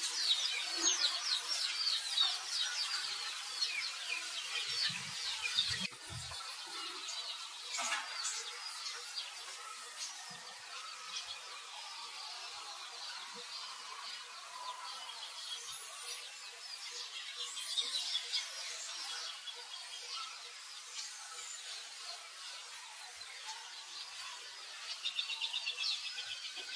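A baby monkey screams and squeals shrilly, close by.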